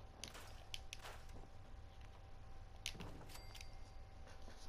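Short electronic menu clicks sound several times.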